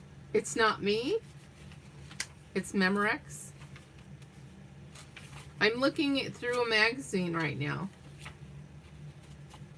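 Magazine pages rustle and flip as they are turned by hand.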